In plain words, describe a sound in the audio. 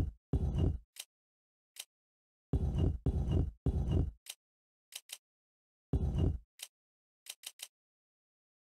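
A menu cursor clicks softly.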